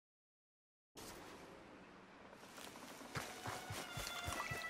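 Footsteps rustle through tall grass outdoors.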